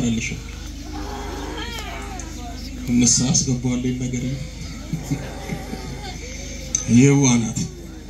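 A man chants loudly into a microphone over a loudspeaker.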